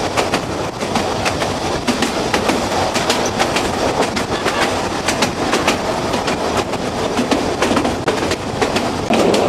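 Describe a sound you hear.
Train carriages rumble steadily along the track.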